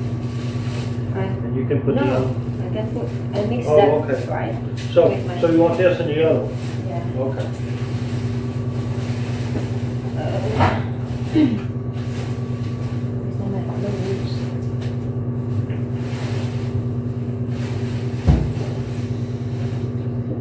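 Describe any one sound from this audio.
A machine hums steadily throughout.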